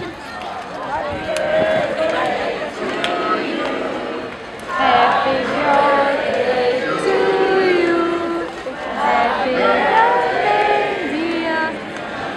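Men and women talk loudly close by.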